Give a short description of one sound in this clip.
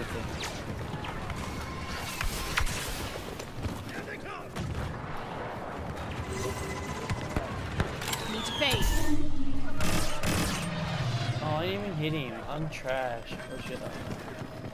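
Laser blasts crack and zap in bursts.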